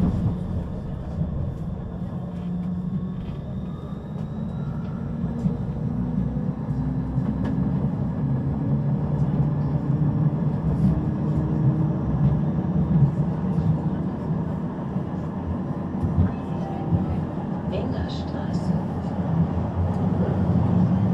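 A standing tram hums with a low, steady drone.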